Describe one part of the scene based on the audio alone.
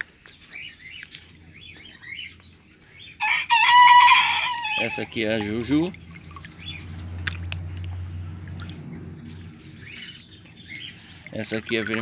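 Water splashes and sloshes as a hand moves through it.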